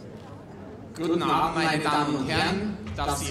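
A man speaks with animation into a microphone, heard over loudspeakers in a large hall.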